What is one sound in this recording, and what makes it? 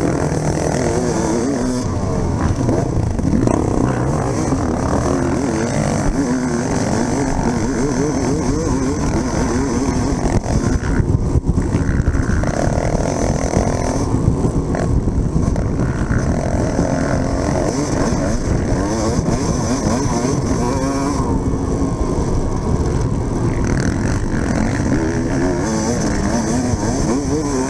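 A dirt bike engine revs hard and close, rising and falling in pitch as it shifts gears.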